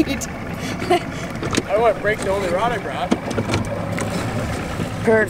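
A boat motor rumbles steadily.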